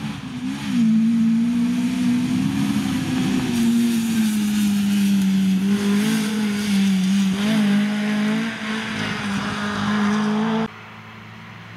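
A rally car engine roars at full throttle.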